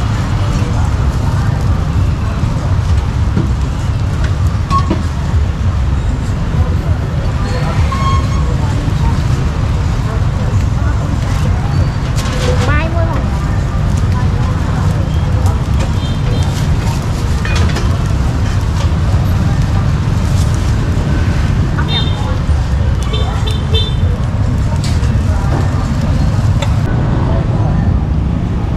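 Motorbike engines rumble and hum as they pass by on a busy street.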